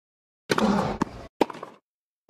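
A tennis ball is struck hard with a racket.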